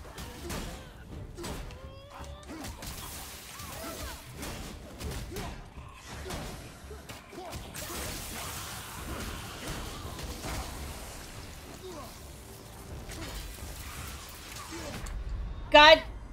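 Weapons clash and thud in a fierce fight.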